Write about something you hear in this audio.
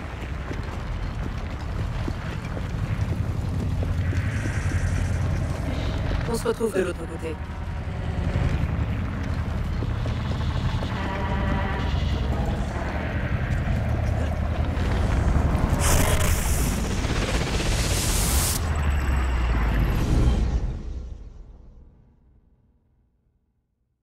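A low, steady rumble of wind fills the air, then fades away to silence.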